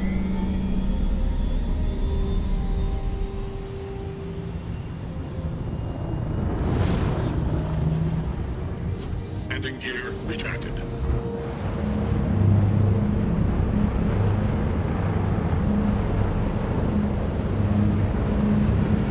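A spacecraft engine roars steadily as the craft flies low.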